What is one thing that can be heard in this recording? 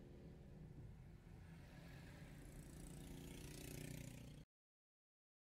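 Motorcycles ride past with buzzing engines.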